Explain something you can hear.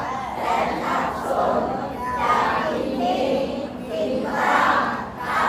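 A crowd of men and women chatter and talk over each other nearby.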